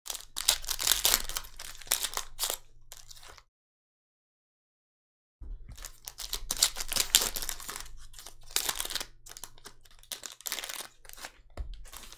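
Foil wrappers tear open.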